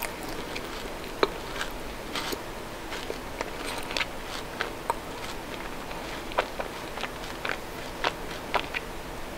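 A woman chews chocolate with her mouth closed, close to a microphone, with soft wet mouth sounds.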